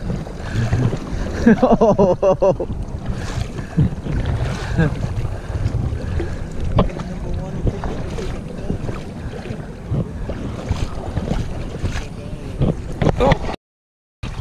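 Shallow river water rushes and gurgles steadily.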